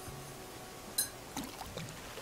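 A fishing bobber plops into water.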